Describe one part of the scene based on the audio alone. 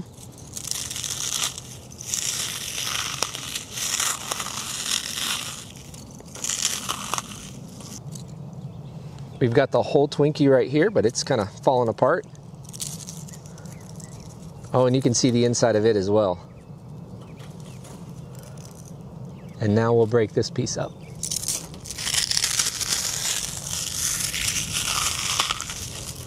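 Hands crumble dry charcoal with a gritty crunching and rustling.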